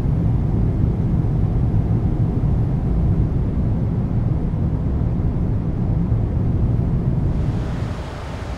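Jet engines roar with a deep, steady drone inside an airliner cabin.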